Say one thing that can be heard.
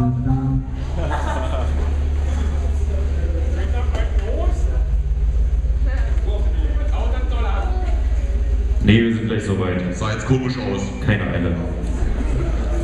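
A man speaks loudly into a microphone over a loudspeaker system, in a large echoing hall.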